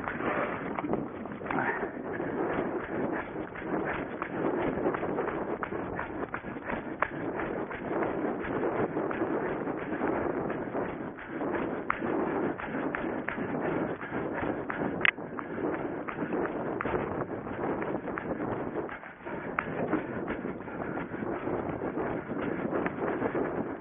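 Footsteps thud and swish rapidly through grass at a running pace.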